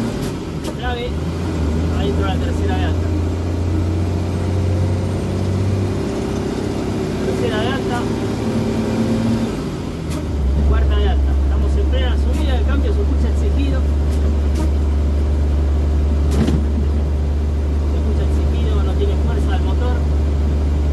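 A vehicle engine idles with a steady low rumble.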